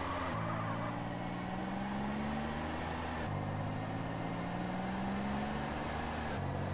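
A car engine drones steadily, rising slowly in pitch and dropping back as the gears change.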